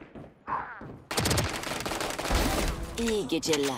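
A gun fires a rapid burst.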